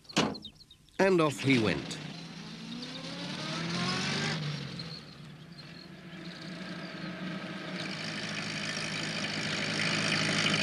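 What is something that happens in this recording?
A small van's engine starts and drives along.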